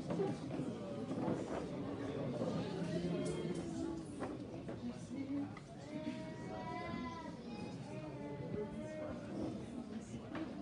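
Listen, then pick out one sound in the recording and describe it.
A crowd of men and women chatter and murmur in a busy room.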